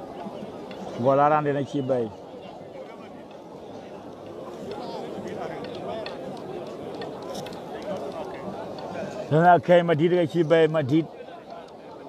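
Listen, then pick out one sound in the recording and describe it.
A man shouts loudly in a chanting voice nearby.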